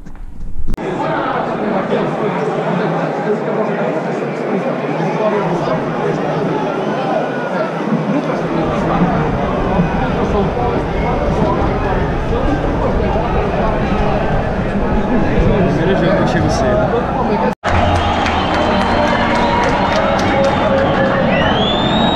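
A large crowd murmurs and chatters in a big open stadium.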